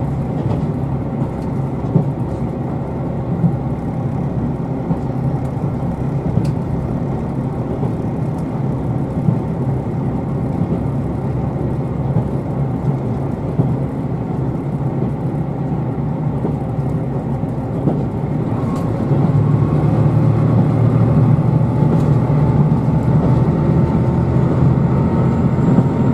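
A train rumbles steadily along the tracks, growing louder later on.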